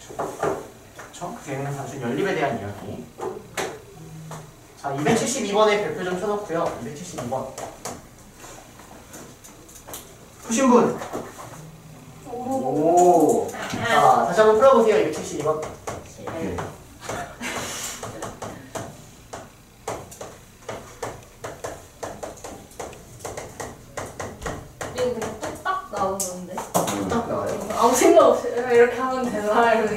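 A young man lectures with animation, heard close through a microphone.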